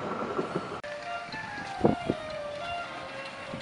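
A steam locomotive's whistle blows briefly.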